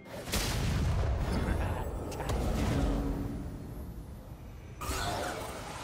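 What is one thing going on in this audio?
Game spell effects whoosh and blast during a fight.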